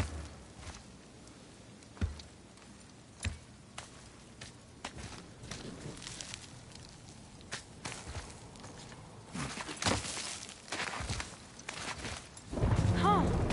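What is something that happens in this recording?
Hands grip and scrape on rock in short, scattered knocks as someone climbs.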